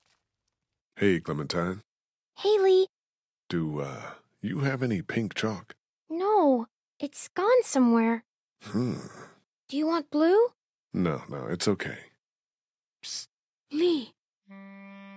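A man talks calmly and quietly, close by.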